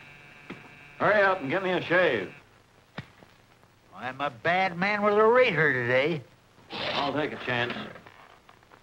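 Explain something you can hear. An elderly man speaks loudly and with animation.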